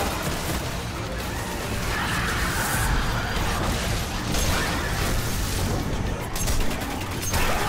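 Guns fire in rapid bursts with loud energy blasts.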